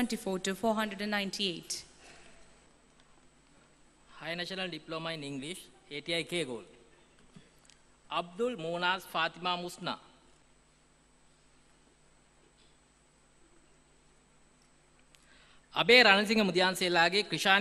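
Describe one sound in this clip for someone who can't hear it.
A young woman reads out names calmly through a microphone and loudspeakers, in a large echoing hall.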